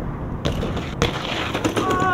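A bike clatters onto the pavement.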